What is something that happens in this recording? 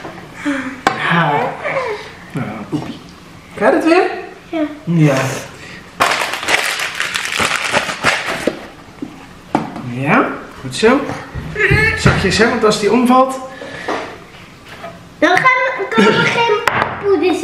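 A young boy talks and laughs.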